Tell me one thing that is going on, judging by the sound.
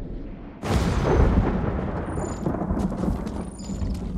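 Footsteps fall on a stone path.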